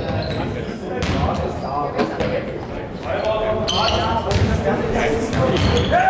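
Men shout and call out to each other in a large echoing hall.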